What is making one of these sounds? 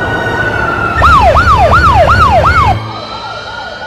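A fire truck siren wails loudly.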